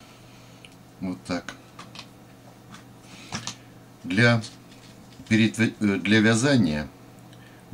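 A man speaks calmly close by, in short phrases.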